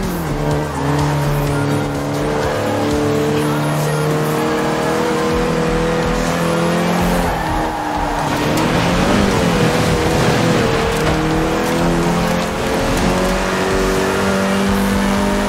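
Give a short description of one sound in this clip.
A car engine revs high and shifts through gears as it races.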